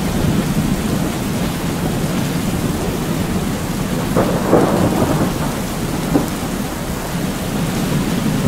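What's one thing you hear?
Lightning strikes crack loudly now and then.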